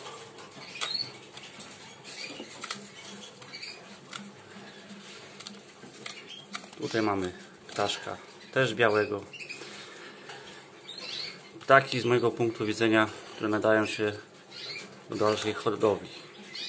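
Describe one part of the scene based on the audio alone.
A small bird chirps softly.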